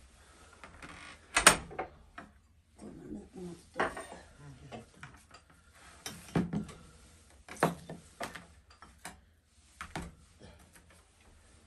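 Dishes clink as they are set down on a tray.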